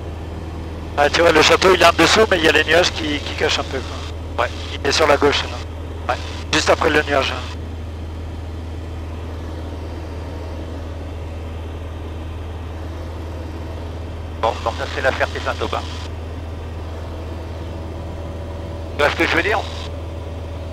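A young man speaks calmly over a headset intercom.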